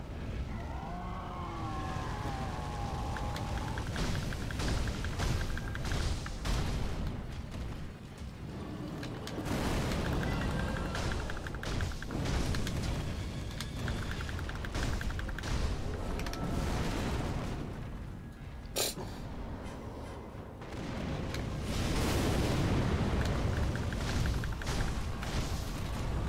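A huge beast growls and roars.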